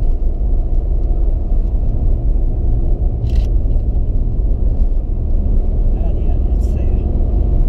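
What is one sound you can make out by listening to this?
A car engine drones steadily from inside the car.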